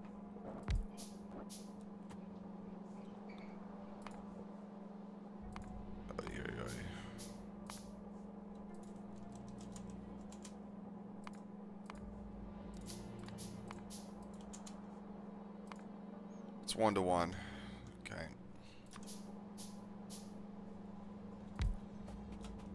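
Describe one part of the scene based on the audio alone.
Short soft clicks tick now and then.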